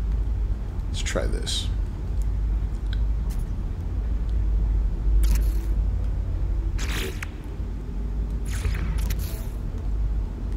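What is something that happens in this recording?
Soft whooshing interface sounds play as menus open and close.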